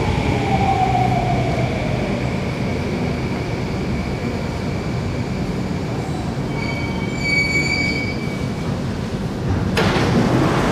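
An electric metro train slows to a stop beside a platform.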